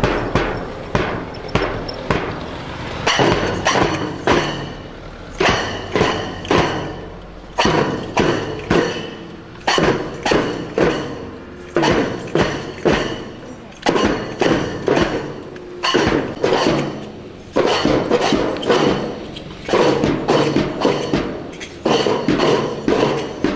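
Cymbals crash along with the drum beats.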